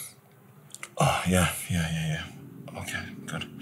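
A man speaks quietly into a phone close by.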